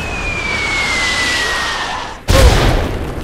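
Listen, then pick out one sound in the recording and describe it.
Missiles whistle as they fall.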